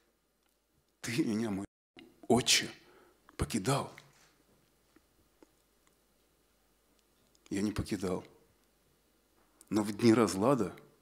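A man speaks into a microphone in short, expressive phrases with pauses between them.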